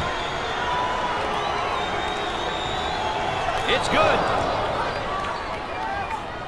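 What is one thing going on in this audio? A crowd cheers and murmurs steadily in a large echoing arena.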